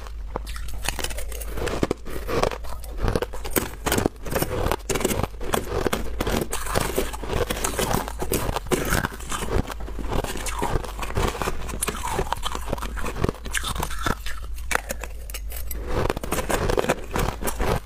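A woman crunches ice loudly with her mouth close to a microphone.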